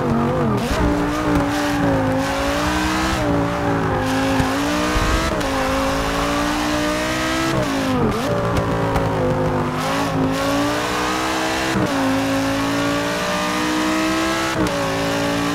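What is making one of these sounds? A racing car engine roars loudly, revving up and dropping as gears shift.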